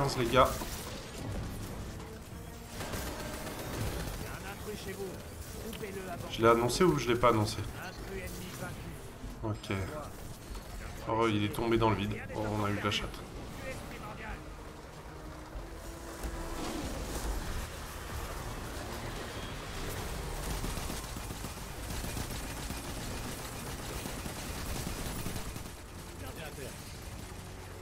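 Gunfire crackles and booms from a game.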